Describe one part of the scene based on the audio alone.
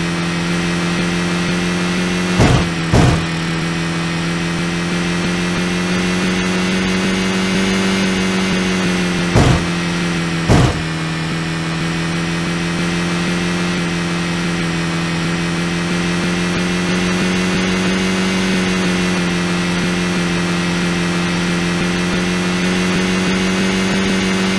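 A car engine hums steadily as the car races along.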